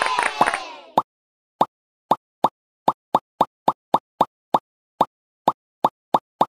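Balloons pop one after another with short bright bursts.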